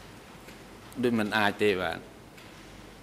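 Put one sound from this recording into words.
A middle-aged man speaks briefly into a microphone.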